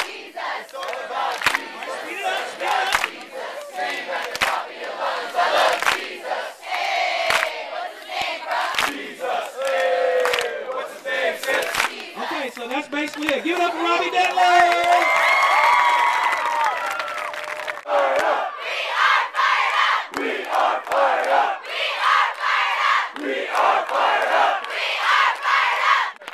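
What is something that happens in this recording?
Young people clap their hands along.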